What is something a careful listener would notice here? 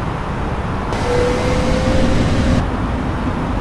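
A jet engine whines loudly, heard from outside the aircraft.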